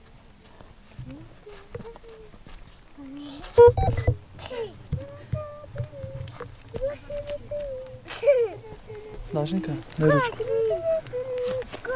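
A young child chatters nearby in a high voice.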